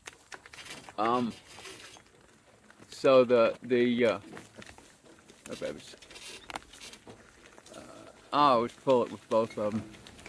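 An elderly man speaks calmly and close by, in short phrases.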